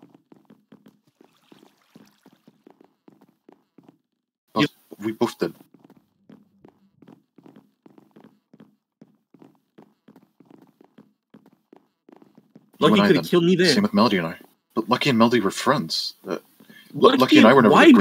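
Footsteps tap steadily on wooden planks.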